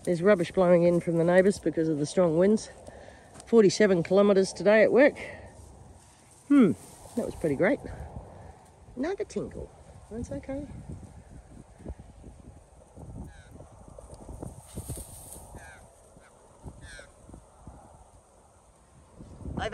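A dog pads through dry grass.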